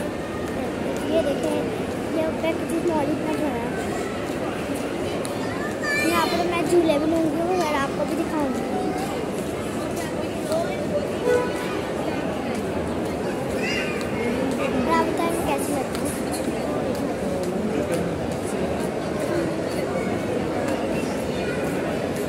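A crowd murmurs all around in a large echoing hall.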